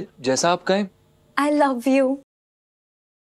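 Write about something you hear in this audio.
A young woman laughs brightly close by.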